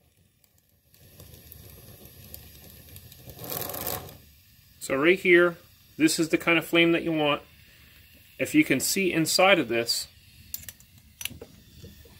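A gas torch flame hisses steadily.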